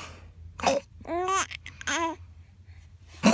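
A baby babbles and coos up close.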